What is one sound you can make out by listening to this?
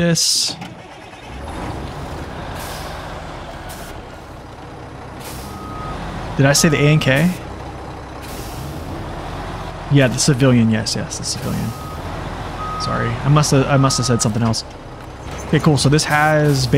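A heavy truck engine rumbles steadily as the truck drives.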